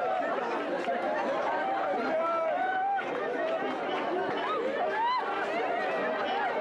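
A crowd of women chatters and cheers loudly.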